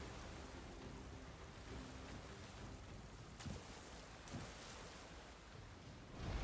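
Magic blasts burst with sharp whooshes.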